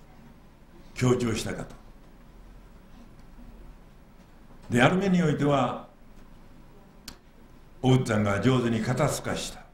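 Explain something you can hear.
An elderly man speaks slowly into a microphone, in short phrases with pauses, in an echoing hall.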